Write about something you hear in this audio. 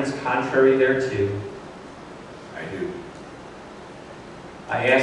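An older man speaks calmly through a microphone, with pauses.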